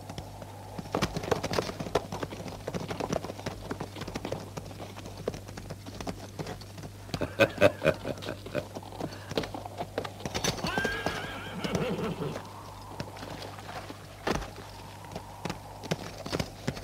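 Horses' hooves clop on hard dirt.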